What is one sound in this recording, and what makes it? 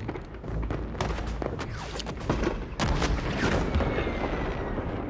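Fireworks crackle and burst loudly.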